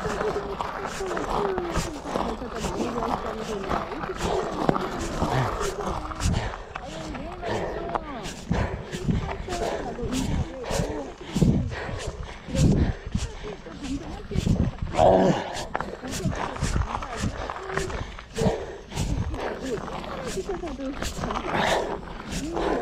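Bicycle tyres crunch over a gravel track.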